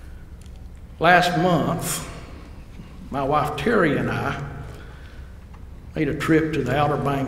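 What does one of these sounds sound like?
An elderly man speaks steadily into a microphone.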